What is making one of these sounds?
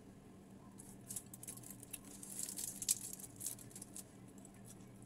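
Fingers tear crisp fried fish with close, sharp crackles.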